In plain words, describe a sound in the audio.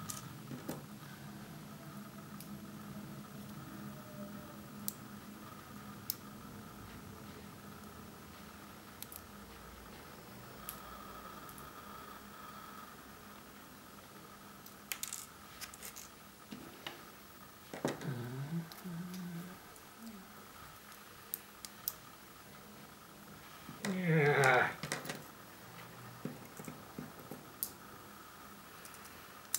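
Small metal parts click and tap on a hard surface.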